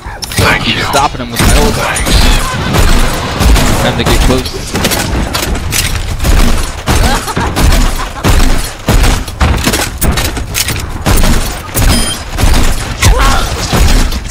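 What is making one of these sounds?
A gun fires in quick repeated bursts.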